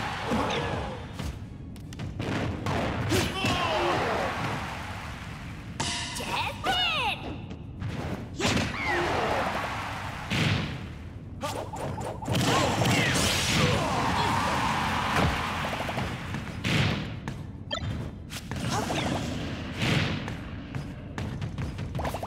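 Video game fighters land punches and kicks with sharp smacks and thuds.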